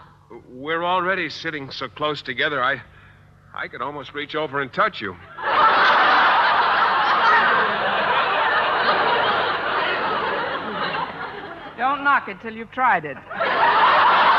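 A woman speaks with animation, heard through an old radio broadcast.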